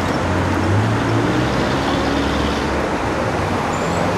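A car drives past on a nearby street with a low rumble.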